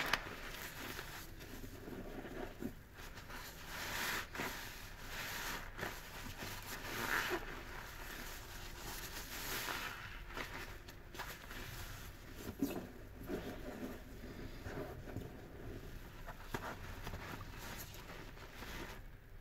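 A wet sponge squishes and scrubs through soapy foam.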